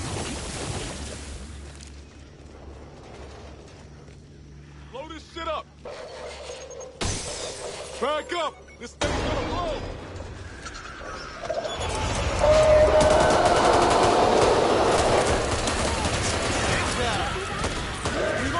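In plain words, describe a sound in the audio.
Monsters growl and screech nearby.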